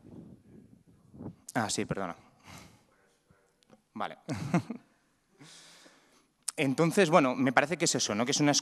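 A man speaks into a microphone calmly, with pauses.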